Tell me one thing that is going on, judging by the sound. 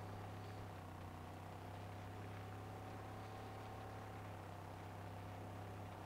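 A car engine drones steadily.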